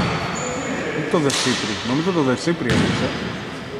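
Sneakers squeak on a wooden court in an echoing hall.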